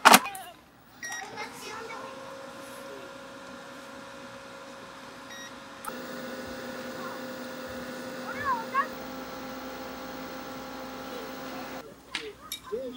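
An air fryer fan hums steadily.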